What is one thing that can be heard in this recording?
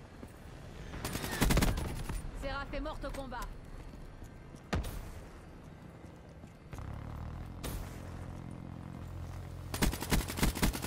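Rapid gunfire bursts out in quick cracks.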